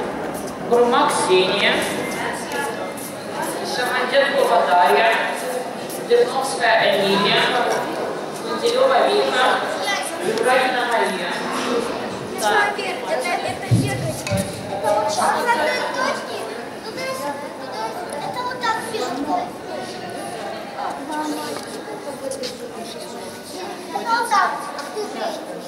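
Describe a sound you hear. Young girls answer in small voices.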